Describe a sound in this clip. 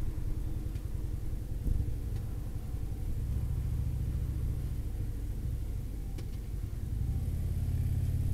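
A V-twin touring motorcycle engine rumbles while cruising on a highway.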